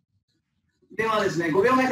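A man speaks with animation through an online call.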